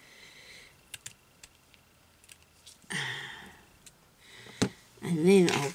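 Scissors snip through lace.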